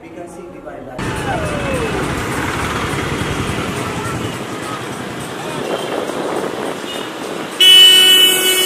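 Traffic and motorbikes rumble along a busy street.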